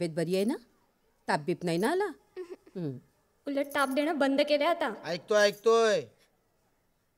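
A middle-aged woman speaks warmly, close by.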